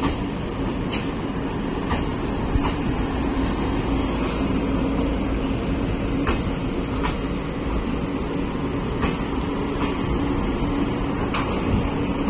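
A passenger train rumbles past close by.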